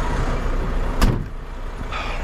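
A truck door slams shut.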